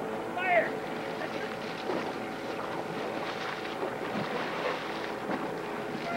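A paddle splashes hard in water close by.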